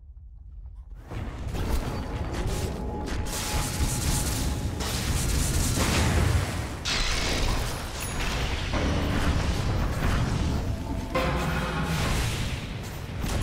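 Spells crackle and weapons clash in a loud fantasy battle.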